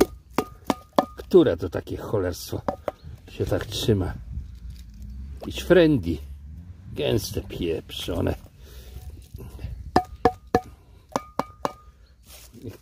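A spoon scrapes and clinks against a tin can.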